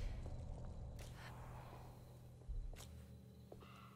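A blade swishes sharply through the air.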